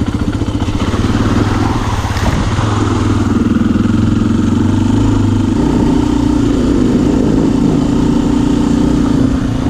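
A dirt bike engine revs and buzzes loudly up close.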